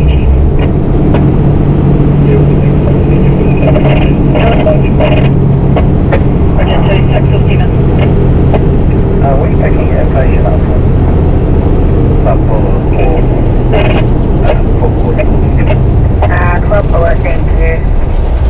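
A heavy truck engine drones steadily as it drives along a road.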